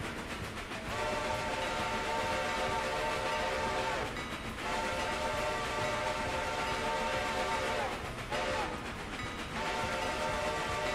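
A steam train whistle blows in long blasts.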